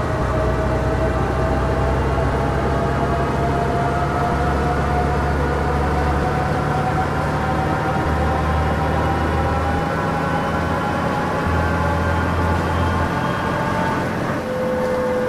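A bus engine hums steadily and slowly rises in pitch as the bus speeds up.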